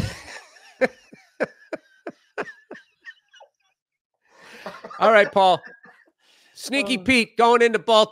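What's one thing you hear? A second man laughs and talks over a headset microphone.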